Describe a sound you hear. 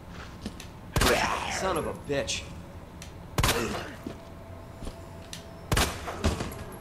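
A shotgun fires loudly several times.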